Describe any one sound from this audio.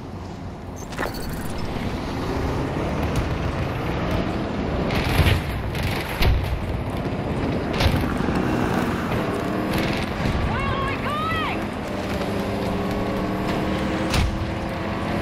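Gunfire and explosions boom in the distance.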